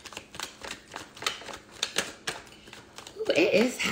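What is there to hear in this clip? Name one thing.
Paper cards flick and snap as they are shuffled.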